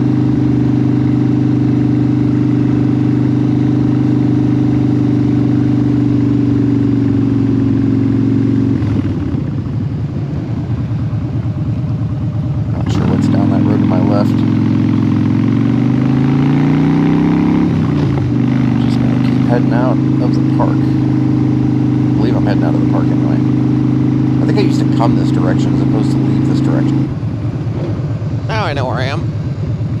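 A motorcycle engine rumbles steadily close by, easing off and then picking up again.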